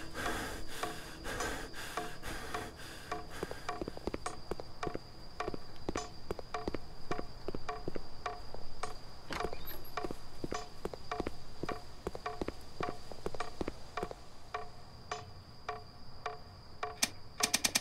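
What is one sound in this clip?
Footsteps tread steadily across a creaky wooden floor.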